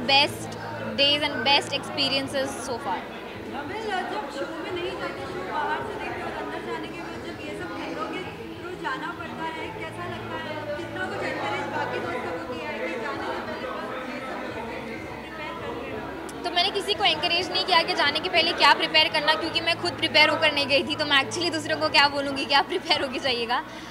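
A young woman speaks with animation into microphones close by.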